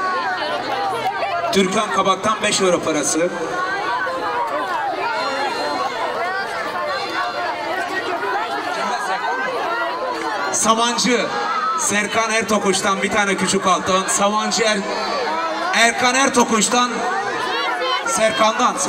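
A crowd of women chatters and cheers close by.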